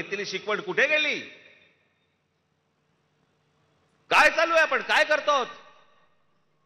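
A middle-aged man speaks forcefully into a microphone, echoing through loudspeakers.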